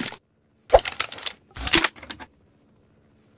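A toy gun fires with short popping shots.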